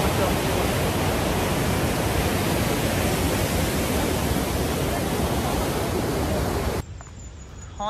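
Rushing river water roars loudly nearby.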